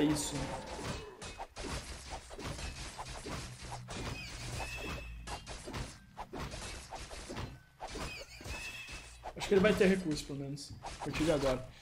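Game weapons clash in a battle.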